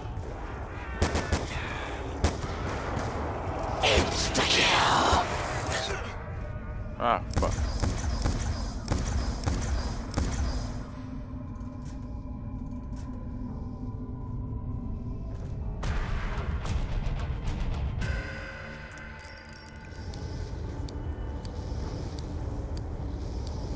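A young man talks casually through a headset microphone.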